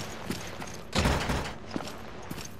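A heavy locked door rattles loudly.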